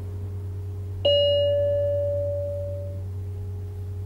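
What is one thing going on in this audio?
A tram chime rings once.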